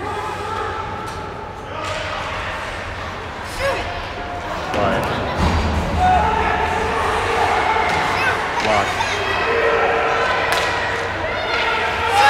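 A crowd of spectators chatters and calls out in a large echoing arena.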